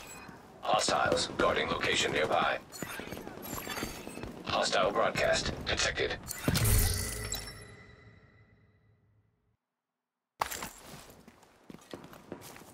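Footsteps walk over hard ground outdoors.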